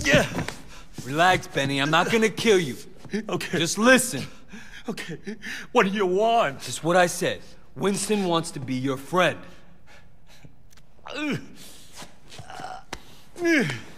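An elderly man pleads with animation.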